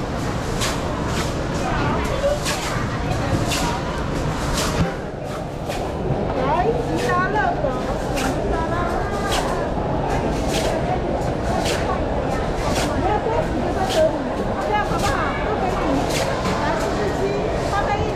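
A crowd of men and women murmur and chatter in a large echoing hall.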